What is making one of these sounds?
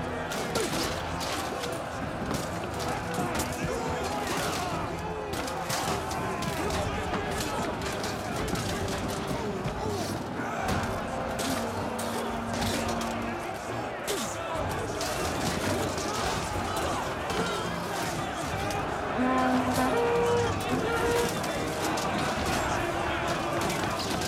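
Swords clash against shields in quick, repeated clangs.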